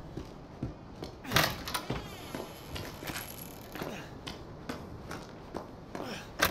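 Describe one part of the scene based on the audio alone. Footsteps thud and creak on wooden floorboards.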